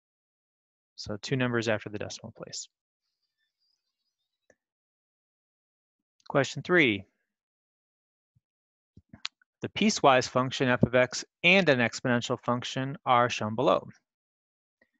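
A young man speaks calmly into a close microphone, explaining in short bursts with pauses.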